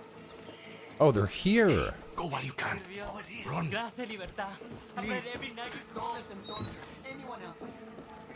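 A man speaks pleadingly through a loudspeaker.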